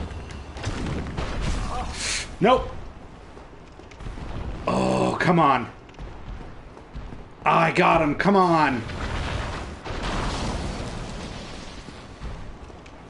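Heavy thuds and clashes of combat sound in bursts.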